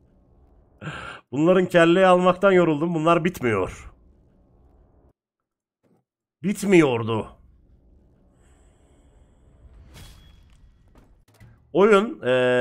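A man talks with animation through a close microphone.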